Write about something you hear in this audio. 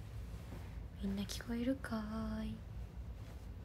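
A young woman speaks briefly and softly close by.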